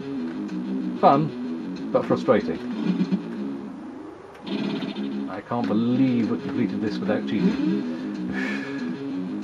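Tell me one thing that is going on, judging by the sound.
Electronic game sound effects zap and chirp with quick sliding pitches.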